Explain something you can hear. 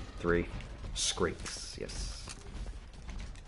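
A shotgun is loaded with sharp metallic clicks and clacks.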